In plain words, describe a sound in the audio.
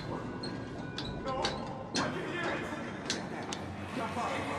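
Hands clank on the metal rungs of a ladder.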